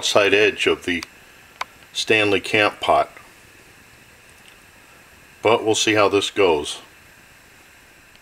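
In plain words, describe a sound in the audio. A gas burner hisses and roars steadily beneath a pot.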